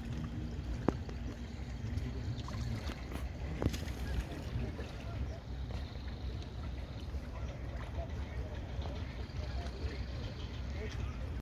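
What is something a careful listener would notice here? Water laps and splashes gently close by.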